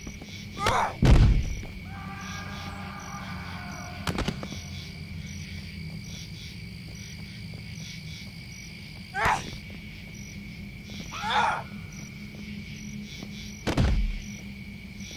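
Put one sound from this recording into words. A body slams heavily onto the ground with a deep thud.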